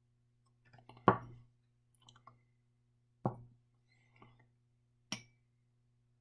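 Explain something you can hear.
A glass beaker clinks as it is set down on a hard surface.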